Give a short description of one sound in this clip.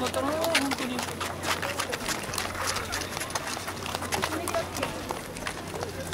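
Young women call out nearby.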